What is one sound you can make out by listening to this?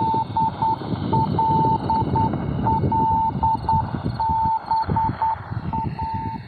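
Morse code beeps steadily from a shortwave radio.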